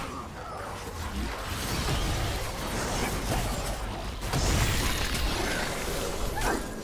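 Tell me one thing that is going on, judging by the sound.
Spells and blows crackle and thud in a video game battle.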